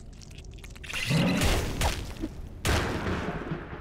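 A fireball bursts with a roaring blast.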